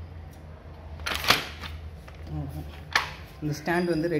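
Plastic parts click and knock together.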